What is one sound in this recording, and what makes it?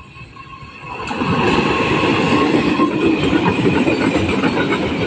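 Train wheels clatter loudly over the rails close by.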